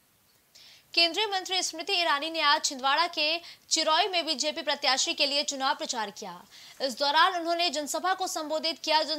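A young woman reads out the news calmly into a microphone.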